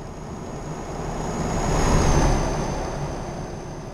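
A truck roars past close by.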